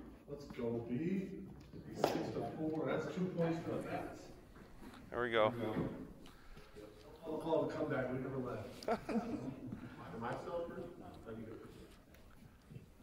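Men talk casually nearby in an echoing hall.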